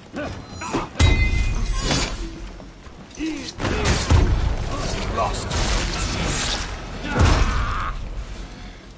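Swords clash and strike in a melee fight.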